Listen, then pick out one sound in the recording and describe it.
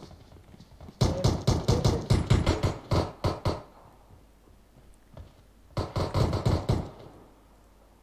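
Rapid bursts of rifle gunfire ring out close by.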